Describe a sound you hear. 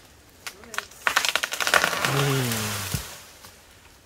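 Leafy branches crash and rustle as a tree limb falls.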